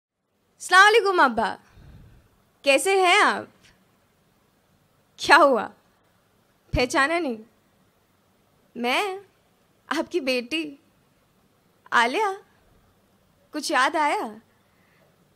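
A young woman speaks expressively into a microphone in short phrases with pauses.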